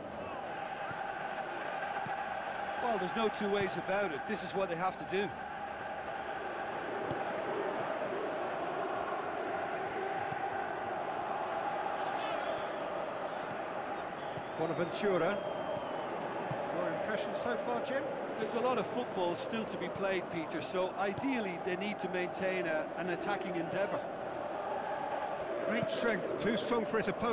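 A large stadium crowd roars and murmurs steadily throughout.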